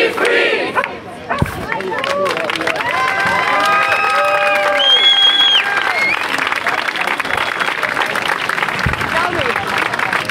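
A crowd chants and sings together outdoors.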